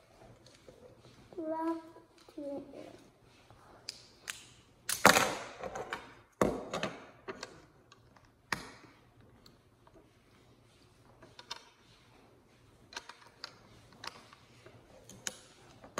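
Plastic toy bricks click and clatter together.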